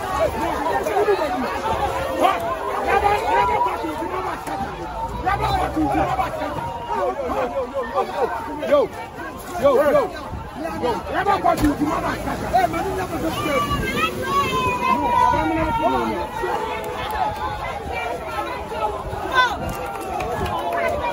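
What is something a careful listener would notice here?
A crowd of men and women shouts and chatters loudly outdoors.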